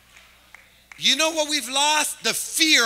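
A man speaks loudly and with energy through a microphone in a large hall.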